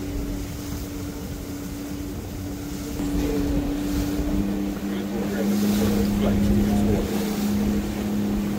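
Water splashes against the hull of a moving boat.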